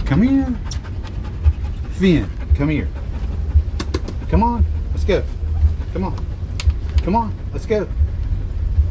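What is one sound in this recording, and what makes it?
A dog whines in short, rising and falling cries, again and again.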